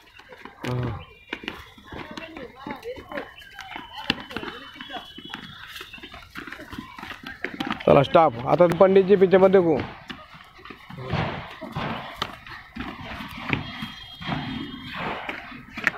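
Feet patter on concrete as children hop.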